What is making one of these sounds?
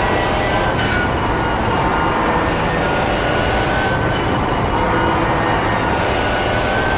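A racing car engine roars loudly at high speed, heard from inside the cockpit.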